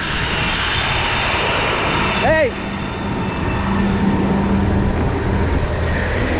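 Engines idle with a low steady rumble.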